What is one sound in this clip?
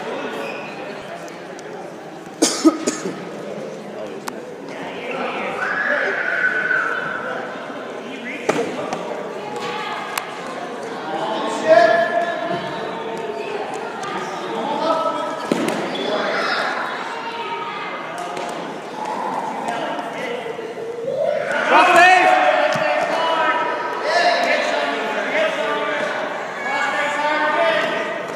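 Wrestlers' shoes squeak and thud on a mat.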